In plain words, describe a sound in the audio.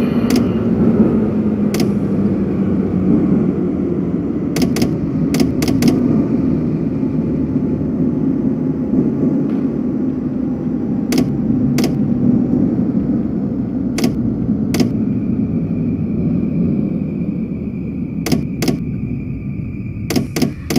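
A train rumbles steadily along the track as it slows.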